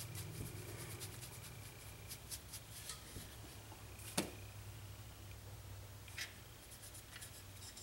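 Fingers rub and handle a wooden figure.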